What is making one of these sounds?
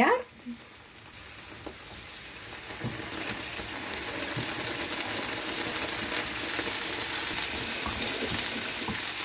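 Food sizzles in a hot frying pan, growing louder.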